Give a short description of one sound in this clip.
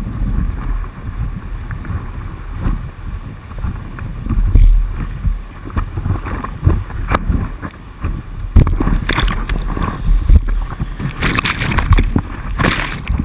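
Whitewater rushes and churns close by.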